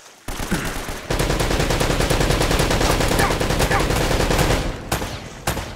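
Water splashes and rushes loudly.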